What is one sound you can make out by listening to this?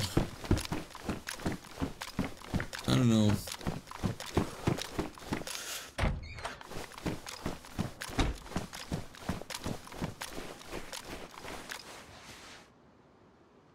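Footsteps walk at a steady pace, first on a hard floor and then crunching over snow.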